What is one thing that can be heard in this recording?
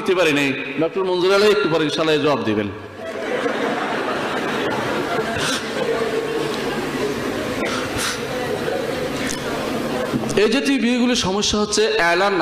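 A man speaks steadily into a microphone, heard over loudspeakers.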